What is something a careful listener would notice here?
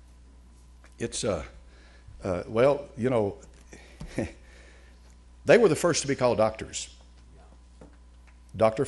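An elderly man speaks slowly and firmly through a microphone in a large room.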